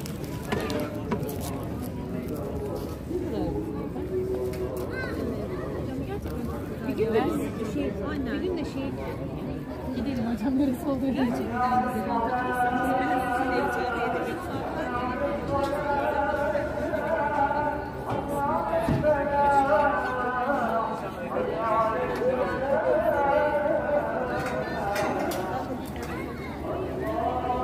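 Men and women chatter in a crowd outdoors.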